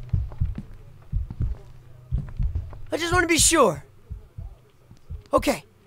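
A young man talks and exclaims loudly into a close microphone.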